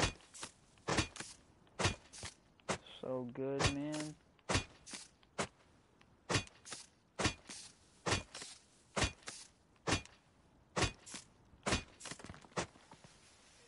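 An axe chops into a tree trunk with sharp, rhythmic knocks.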